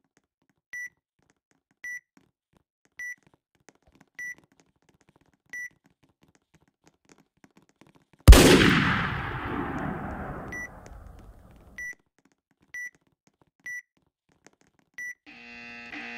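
Short electronic beeps sound as menu buttons are pressed.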